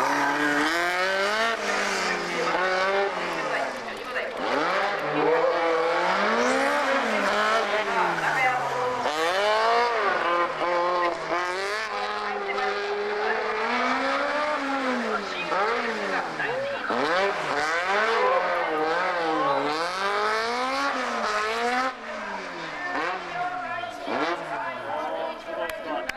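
A racing car engine screams loudly, its pitch rising and falling as it shifts gears through the corners.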